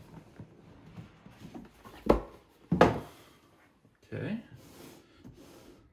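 A cardboard box lid slides off and knocks on a table.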